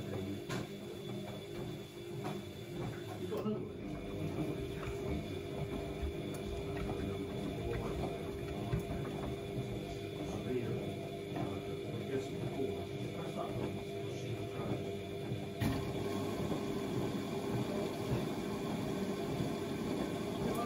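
Water and wet laundry slosh inside a washing machine drum.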